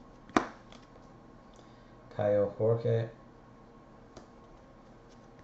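Trading cards slide and rustle against each other in hands.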